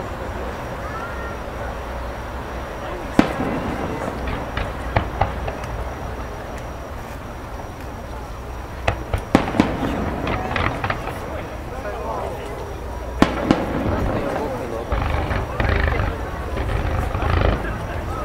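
Fireworks bang and crackle in the distance, with sharp booms now and then.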